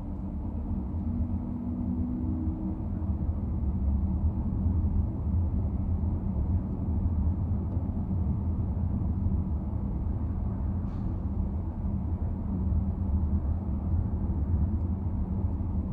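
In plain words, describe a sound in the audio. A car's engine hums low and steady from inside while driving.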